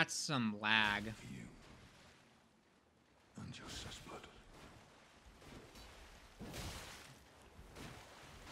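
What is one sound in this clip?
Water splashes as feet run through shallows.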